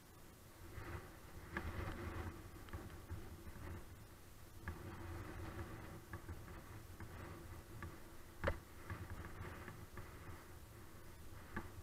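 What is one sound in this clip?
Bicycle tyres rumble and clatter over wooden boards.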